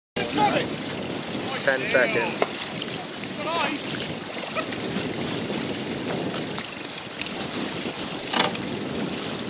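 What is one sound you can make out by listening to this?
Choppy waves slap and splash close by.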